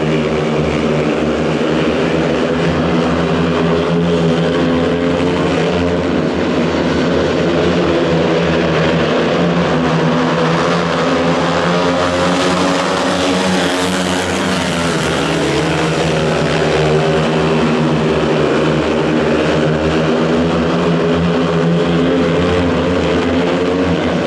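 Speedway motorcycle engines roar loudly as the bikes race around the track.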